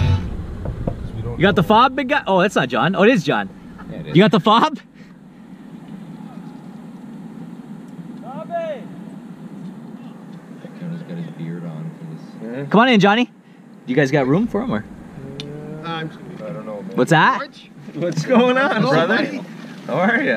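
A man talks with animation close by, inside a car.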